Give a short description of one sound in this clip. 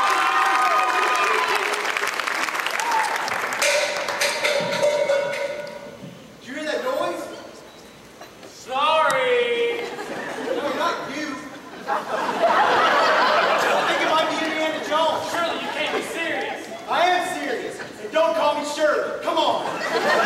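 A group of young men and women sing together on a stage.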